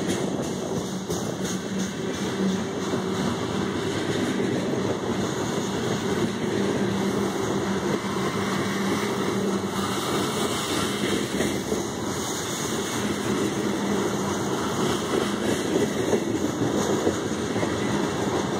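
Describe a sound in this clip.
Steel wheels clatter and squeal on the rails.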